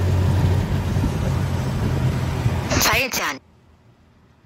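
A small motor vehicle's engine rumbles as it drives along a road.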